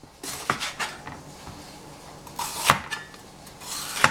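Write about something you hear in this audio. A knife knocks on a cutting board.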